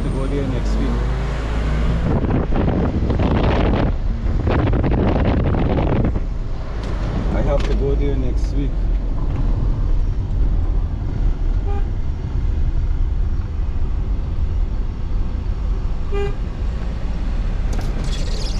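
A car engine hums steadily from inside the car as it drives.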